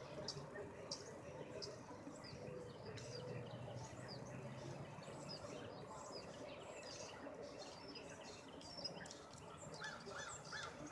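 A small bird chirps in short high notes.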